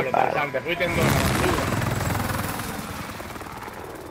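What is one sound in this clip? A helicopter's rotor thumps loudly and slowly fades into the distance.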